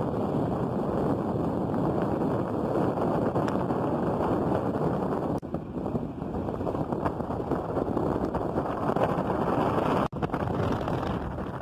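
Tyres rumble steadily on a road, heard from inside a moving car.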